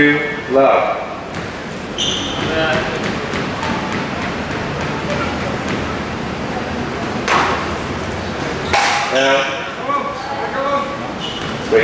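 Spectators chatter and call out in an echoing hall.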